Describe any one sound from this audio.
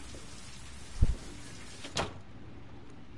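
A door shuts with a thud.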